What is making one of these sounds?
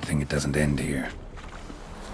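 A man speaks in a low, gravelly voice.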